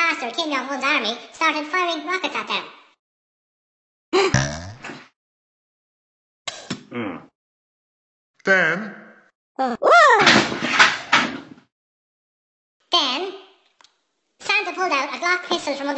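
A high-pitched cartoon voice talks quickly and animatedly.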